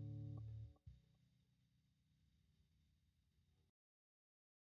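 A band plays a final chord that rings out and fades away.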